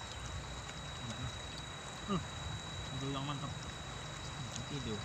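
A river flows and babbles steadily nearby.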